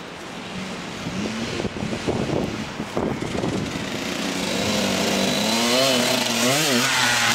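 A dirt bike engine revs and grows louder as the bike approaches.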